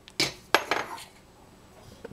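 A metal spoon scrapes and clinks against a saucepan.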